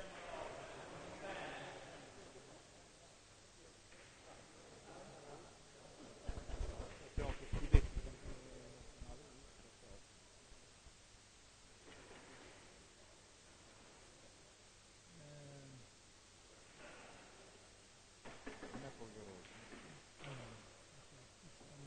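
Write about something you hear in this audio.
A man speaks calmly close by in a large echoing hall.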